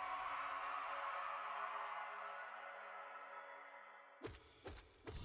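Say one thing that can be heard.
A deep roaring boom swells and fades.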